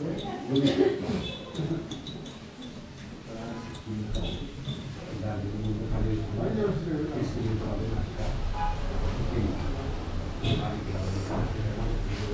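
A man speaks calmly and close to the microphone.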